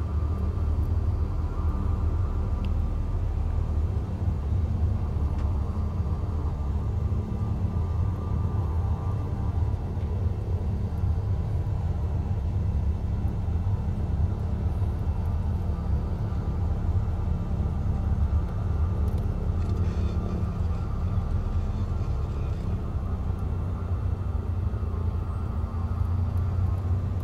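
A small propeller plane's engine drones steadily at idle.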